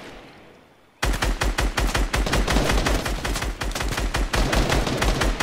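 Rapid gunfire blasts in quick bursts.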